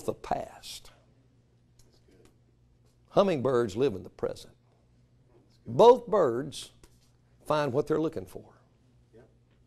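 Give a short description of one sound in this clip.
A middle-aged man speaks to an audience in short, animated bursts with pauses, heard through a microphone in a room.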